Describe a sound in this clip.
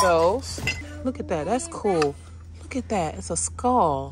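Glasses clink together.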